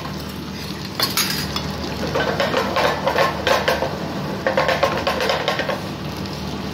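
A metal pan scrapes and rattles on a gas burner as it is tossed.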